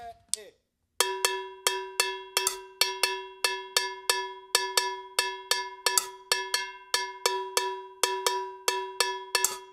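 A drummer strikes a ringing drum in a steady, even beat.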